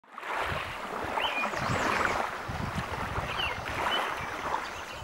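Small waves wash gently onto a pebbly shore.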